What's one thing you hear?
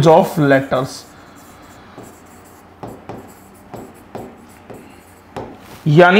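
A marker taps and squeaks on a writing board.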